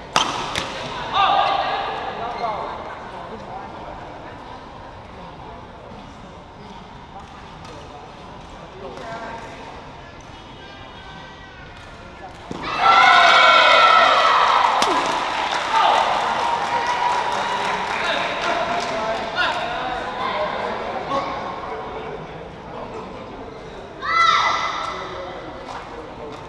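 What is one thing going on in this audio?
A crowd of men shouts and cheers in a large echoing hall.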